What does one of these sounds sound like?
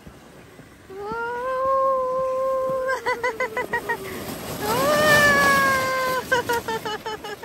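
A young girl squeals with excitement close by.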